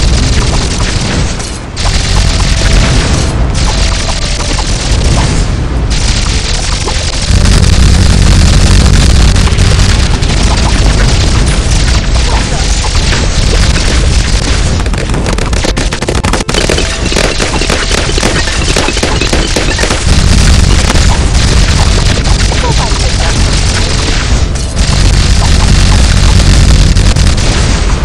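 Video game sound effects of balloons popping rattle in quick succession.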